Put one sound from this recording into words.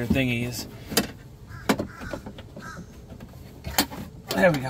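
Plastic parts click and knock inside a car door.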